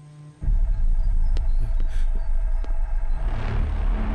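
Footsteps tread slowly on hard ground outdoors.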